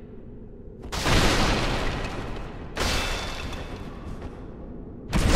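A large creature roars close by.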